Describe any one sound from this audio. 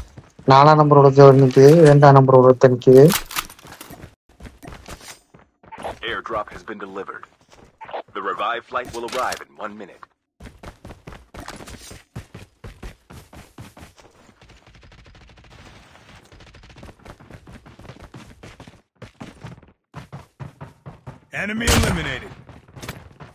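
Quick footsteps run over grass and dirt.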